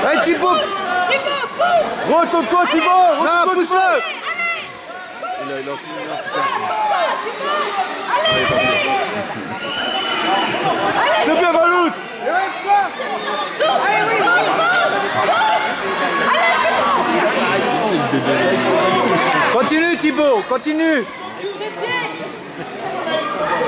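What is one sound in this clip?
A crowd of children and adults shouts and cheers loudly in a large echoing hall.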